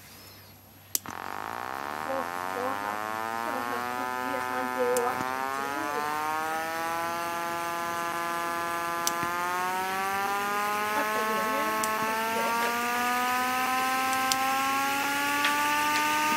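A small speaker plays a humming electric motor sound that slowly rises in pitch.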